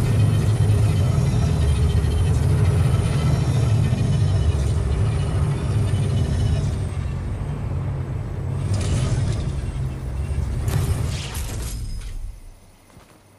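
A hovering craft drones with a low, steady rumble, then falls quiet.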